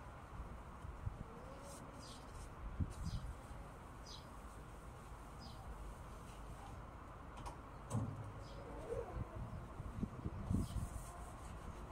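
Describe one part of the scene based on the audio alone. Objects knock and clatter close by.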